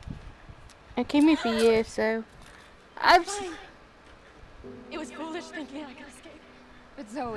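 A young woman speaks in a tense, distressed voice.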